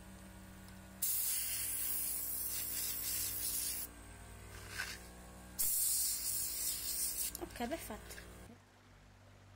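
An airbrush hisses as it sprays in bursts.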